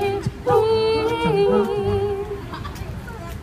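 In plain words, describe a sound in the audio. A small group of young men and women sings together in close harmony.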